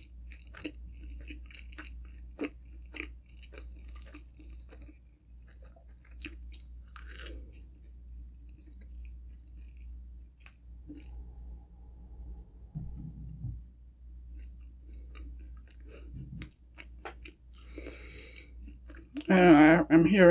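A young woman chews food with soft mouth sounds close to a microphone.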